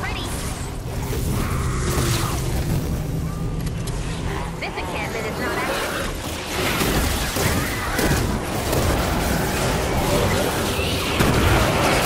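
Blows hit enemies with sharp impacts.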